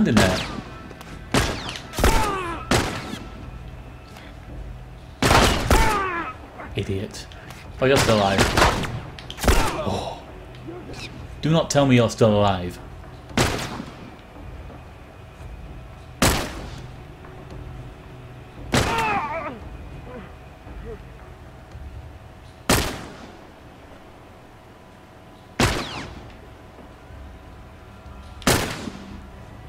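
Gunshots crack repeatedly with a ringing echo.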